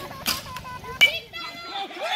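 A metal bat sharply pings against a ball.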